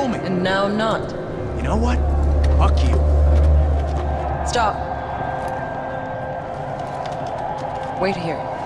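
A woman speaks tensely, close by.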